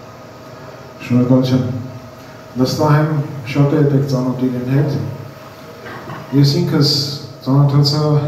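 An older man speaks calmly into a microphone over a loudspeaker in an echoing hall.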